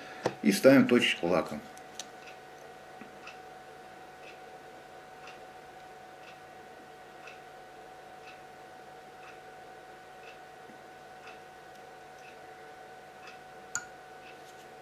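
A cork squeaks as it is pulled from and pushed back into a small glass bottle.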